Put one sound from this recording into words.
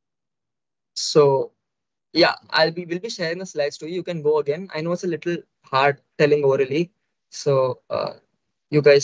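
A young man speaks with animation into a microphone on an online call.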